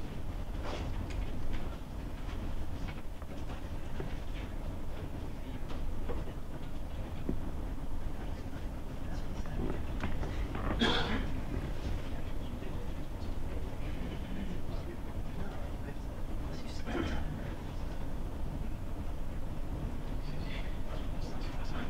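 An audience murmurs and shifts quietly.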